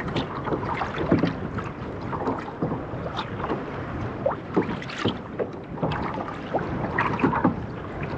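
A fishing reel clicks as it winds.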